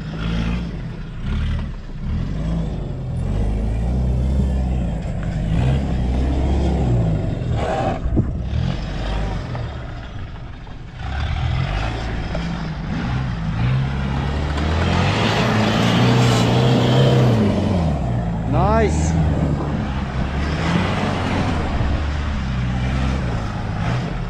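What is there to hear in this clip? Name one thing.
A truck engine roars and revs as it climbs a dirt slope.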